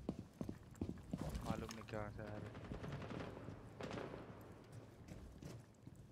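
Footsteps thud on a hard floor at a steady walking pace.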